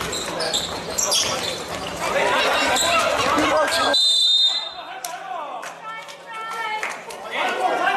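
Basketball shoes squeak on a wooden court.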